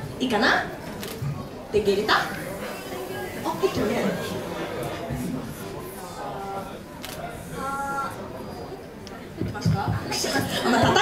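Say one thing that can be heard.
Young girls talk into microphones over loudspeakers.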